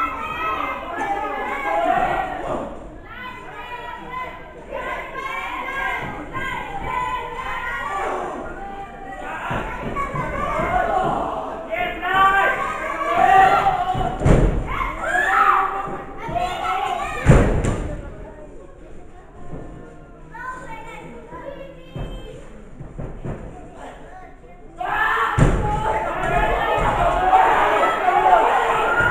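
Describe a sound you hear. A crowd of spectators chatters and shouts.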